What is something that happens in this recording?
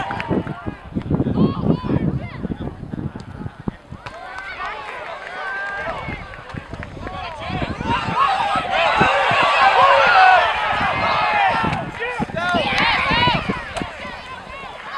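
A crowd of spectators and young players cheer and shout outdoors.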